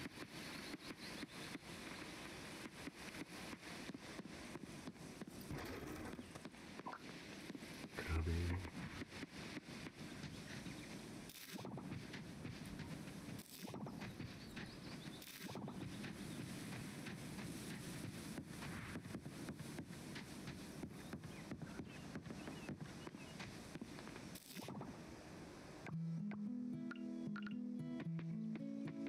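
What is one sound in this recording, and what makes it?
Light footsteps patter along a path.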